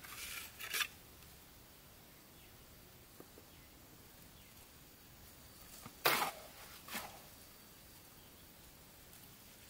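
A trowel scrapes and taps on brick.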